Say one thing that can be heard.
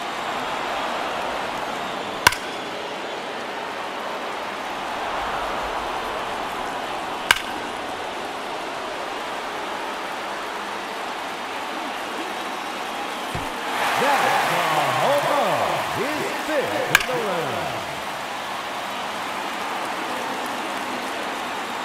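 A large crowd murmurs steadily and swells into cheering.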